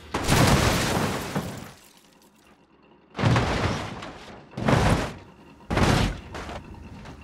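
Metal crashes and crunches in several loud impacts.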